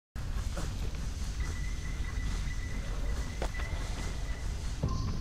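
Hands grip and scrape against stone while climbing.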